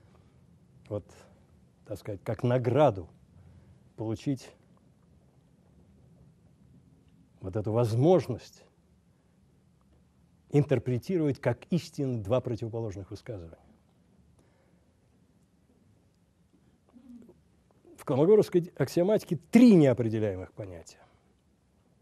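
An older man speaks slowly and calmly into a microphone, heard over a loudspeaker in an echoing hall, with long pauses.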